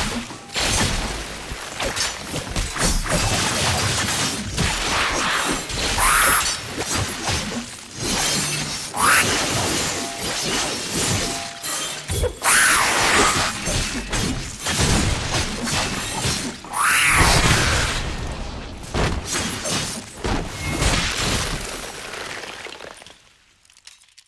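Heavy blows thud and crash.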